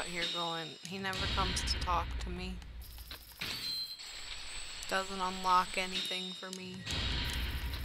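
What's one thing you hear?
A video game plays a bright chiming jingle.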